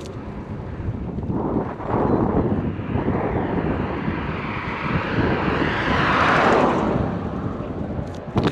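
A car approaches, passes close by and fades away.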